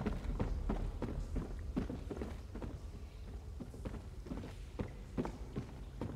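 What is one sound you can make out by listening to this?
Footsteps thud steadily on hollow wooden boards.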